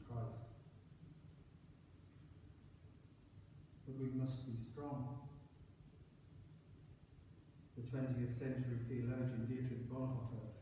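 An elderly man reads aloud slowly in a large echoing room, with pauses.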